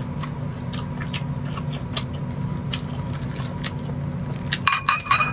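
A young woman chews food with wet smacking sounds close up.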